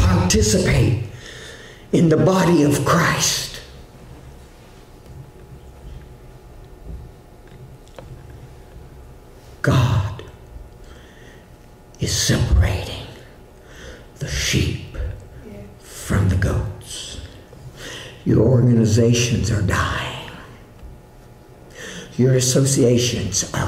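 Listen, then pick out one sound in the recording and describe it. An elderly man speaks into a microphone in bursts with long pauses.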